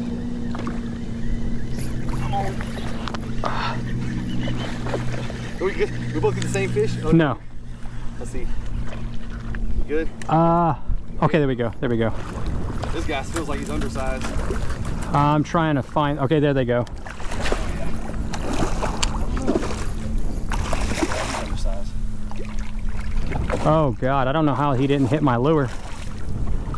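Wind blows and rumbles across open water.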